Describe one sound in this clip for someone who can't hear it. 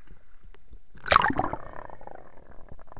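Water splashes loudly close by.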